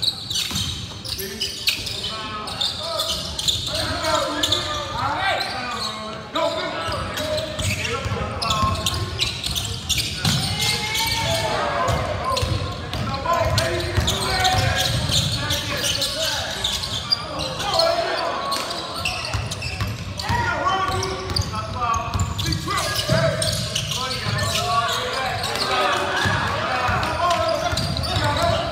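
Spectators talk and cheer in an echoing gym.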